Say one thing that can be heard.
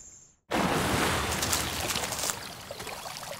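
Water splashes loudly over choppy waves.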